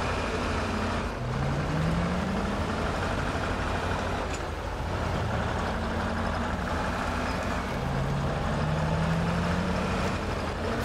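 A heavy truck engine rumbles and revs as the truck drives over rough ground.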